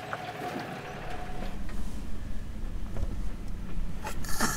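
A vehicle engine rumbles while driving over a bumpy dirt track.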